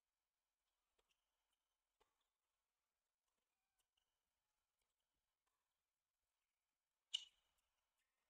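A tennis ball is hit back and forth with rackets, in sharp faint pops.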